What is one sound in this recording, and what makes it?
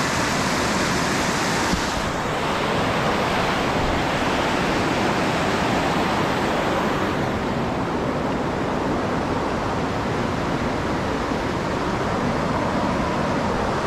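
A river rushes loudly over rocks nearby.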